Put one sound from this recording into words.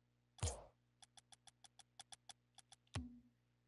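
Short menu clicks tick in quick succession.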